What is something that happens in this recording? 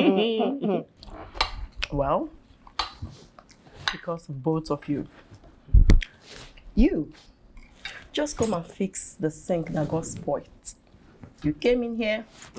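A second woman speaks with animation, close by.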